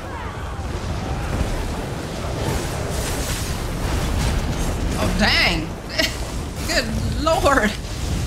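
Magic blasts crackle and boom in a fierce battle.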